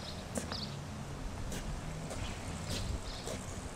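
Footsteps walk across grass outdoors.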